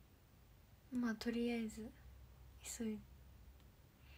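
A young woman speaks briefly and softly close to the microphone.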